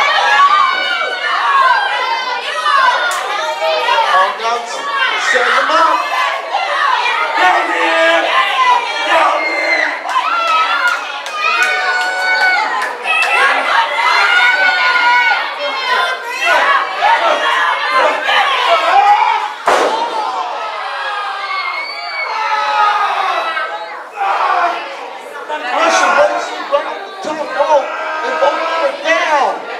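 A crowd of men and women shouts and cheers in an echoing hall.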